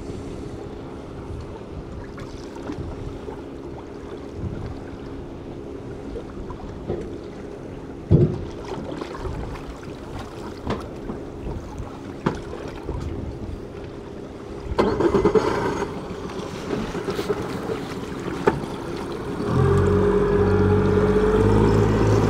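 Choppy waves slap and splash on open water.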